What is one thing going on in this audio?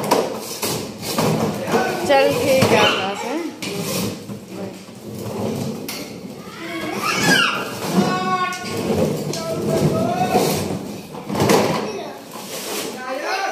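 A small child squeals and babbles excitedly.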